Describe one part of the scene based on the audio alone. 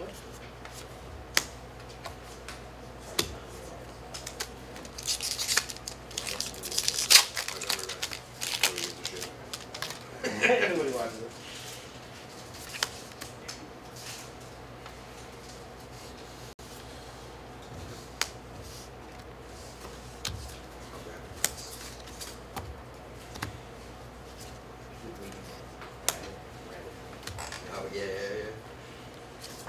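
Cards tap and slide on a table.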